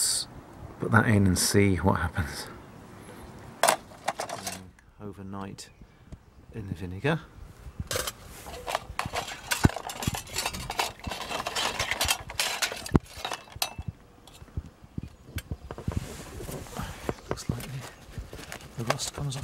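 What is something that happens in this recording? Metal parts clink and scrape as they are handled.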